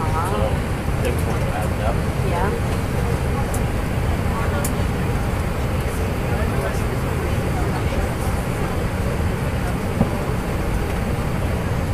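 A steady low roar of aircraft engines drones on.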